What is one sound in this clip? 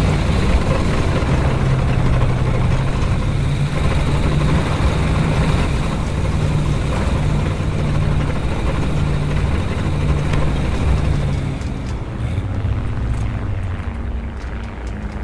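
A tank engine rumbles steadily and loudly close by.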